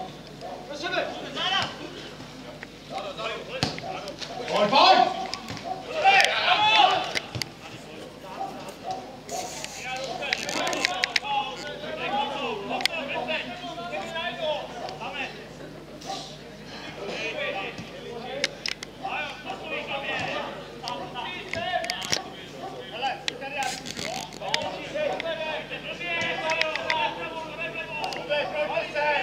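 Players shout to each other across an outdoor football pitch.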